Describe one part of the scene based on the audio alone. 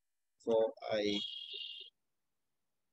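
A young man speaks briefly and calmly, close to a microphone.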